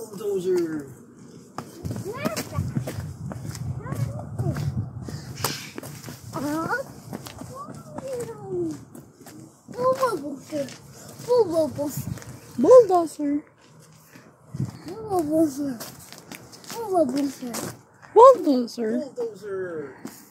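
A toddler babbles and calls out in a high voice close by.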